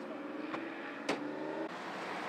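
A vehicle door slams shut.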